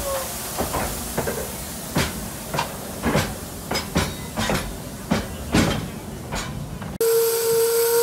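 Steam hisses from a locomotive.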